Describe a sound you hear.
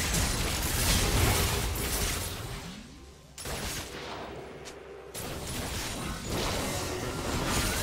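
Game weapons clash and hit repeatedly.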